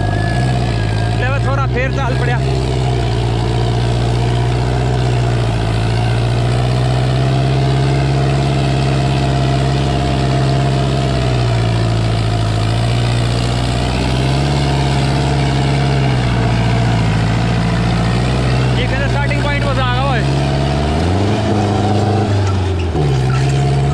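A tractor engine chugs loudly nearby, its pitch rising and falling.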